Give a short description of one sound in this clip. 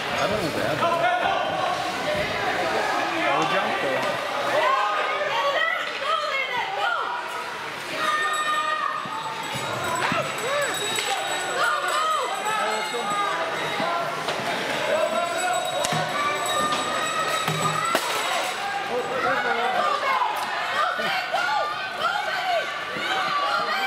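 Spectators chatter and call out in a large echoing arena.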